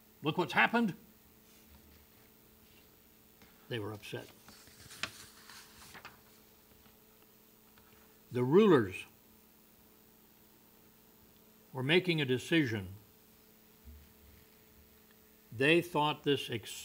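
An elderly man preaches slowly and with emphasis into a microphone, pausing between phrases.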